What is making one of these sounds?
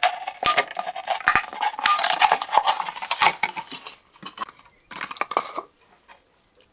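A knife blade scrapes and crackles against thin plastic.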